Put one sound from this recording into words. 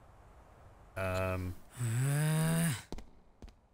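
A young man speaks in drawn-out tones close to a microphone.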